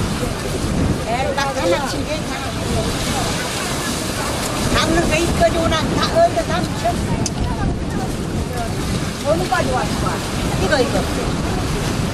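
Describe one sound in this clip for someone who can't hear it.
Women talk to each other nearby.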